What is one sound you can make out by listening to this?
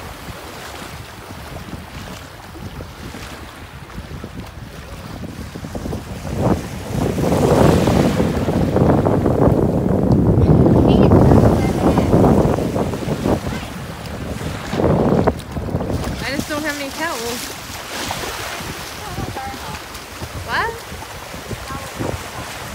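Small waves wash and lap steadily, outdoors.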